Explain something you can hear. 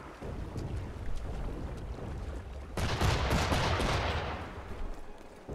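Water splashes loudly as a swimmer thrashes through the sea.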